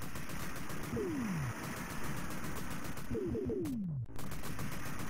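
Falling whistle tones sweep downward in a video game.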